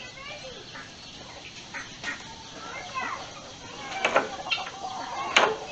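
Chickens cluck nearby outdoors.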